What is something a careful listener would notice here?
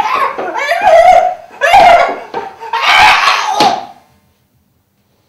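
A young man groans and cries out loudly, close by.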